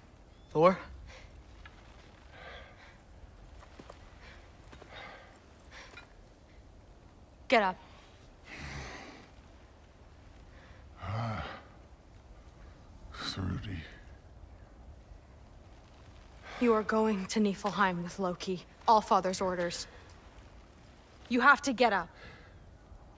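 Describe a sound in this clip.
A young woman speaks firmly and urgently nearby.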